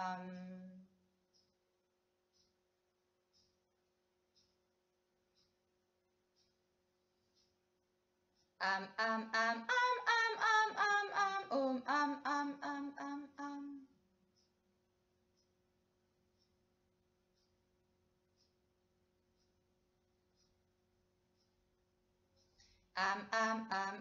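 A young woman sings in a clear voice nearby, in short separate notes.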